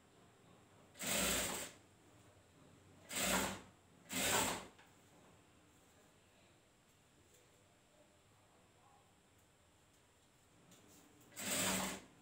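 A sewing machine runs in short bursts.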